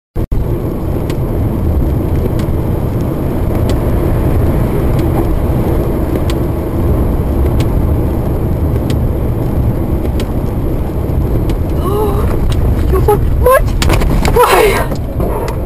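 A car drives fast on a wet road with a steady low roar of tyres and engine.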